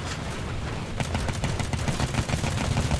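A deck gun fires in rapid bursts.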